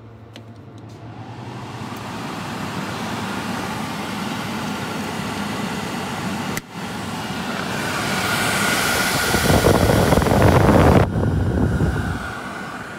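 An air cleaner's fan starts up and rises to a loud, steady rush.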